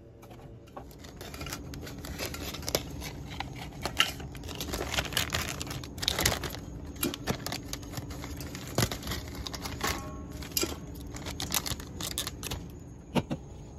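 Thin plastic wrap crinkles and tears as it is pulled off a pack of cans.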